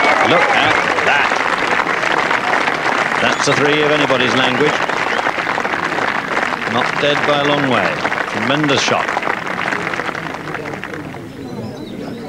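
A crowd applauds and cheers outdoors.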